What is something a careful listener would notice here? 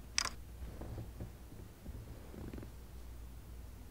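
A couch cushion rustles as someone flops onto it.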